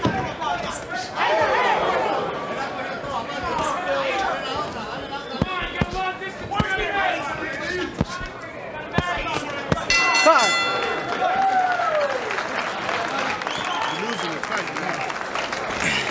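A crowd cheers and shouts loudly in a large arena.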